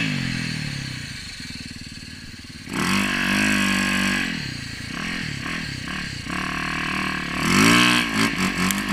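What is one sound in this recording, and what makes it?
A motorcycle engine revs up and down loudly, close by.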